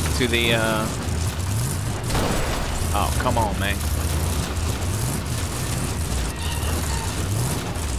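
Brush and branches scrape against a car's body.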